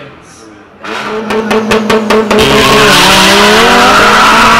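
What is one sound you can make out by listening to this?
A car engine revs hard over and over, close by.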